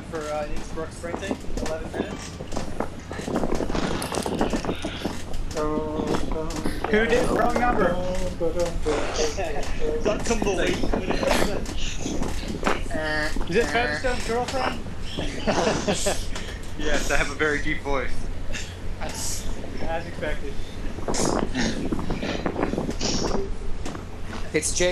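A young man talks casually and with animation, close to a microphone.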